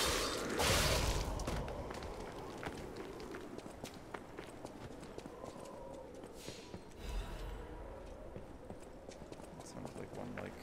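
Footsteps patter quickly over wooden boards and rubble.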